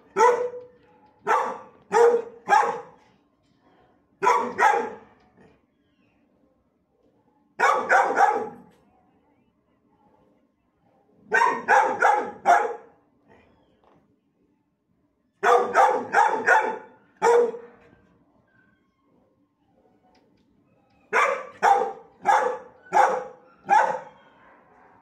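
A dog barks loudly in short bursts of several barks.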